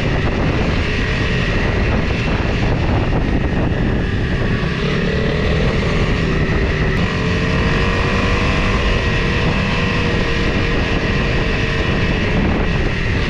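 A motorcycle engine hums steadily as the bike rides along a dirt track.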